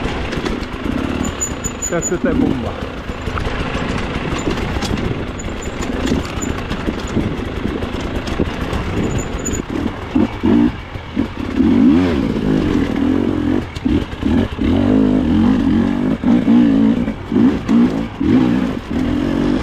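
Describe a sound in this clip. A dirt bike engine revs and sputters up close, rising and falling in pitch.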